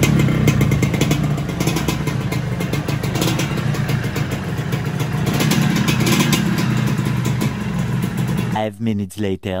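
A motorcycle engine idles loudly close by.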